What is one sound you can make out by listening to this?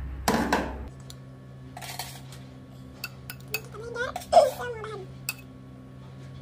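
A metal spoon scrapes and clinks against a plastic jar.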